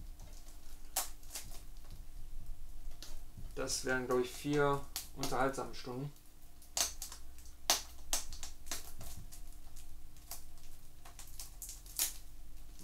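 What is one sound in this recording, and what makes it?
A plastic case clicks and rattles in handling.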